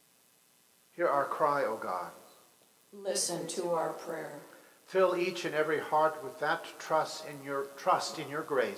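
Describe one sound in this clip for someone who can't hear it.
A man reads aloud calmly through a microphone in an echoing hall.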